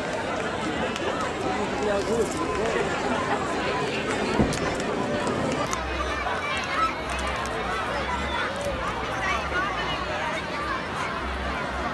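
A large crowd of men, women and children chatters and calls out all around, outdoors.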